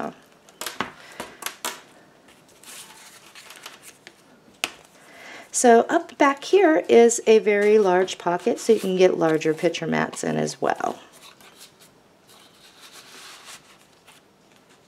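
Stiff paper cards rustle and tap as they are handled.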